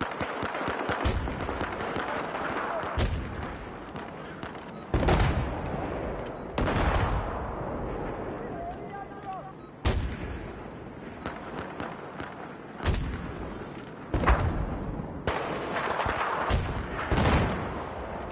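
Sniper rifle shots crack loudly and echo, one every few seconds.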